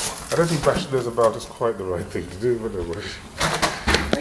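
A foil balloon crinkles and rustles.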